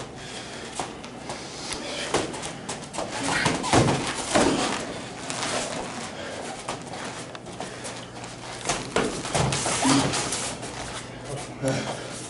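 Feet thump and shuffle on a padded mat.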